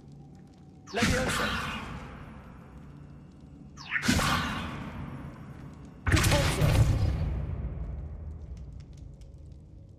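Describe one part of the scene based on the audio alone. A magic spell bursts with a loud whooshing blast that slowly fades, several times.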